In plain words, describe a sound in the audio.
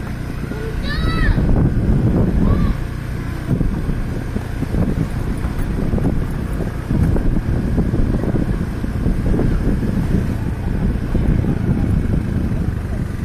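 Wind buffets a microphone outdoors with a low rumble.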